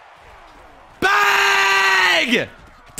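A young man shouts excitedly into a close microphone.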